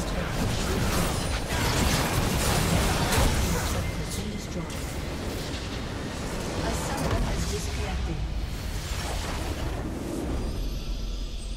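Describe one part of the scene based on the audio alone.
Spell effects and blows crash and crackle in a game battle.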